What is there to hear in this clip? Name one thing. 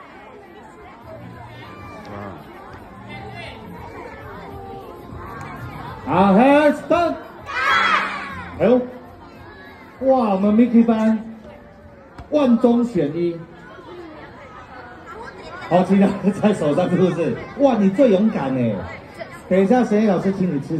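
Many children chatter in a busy outdoor crowd.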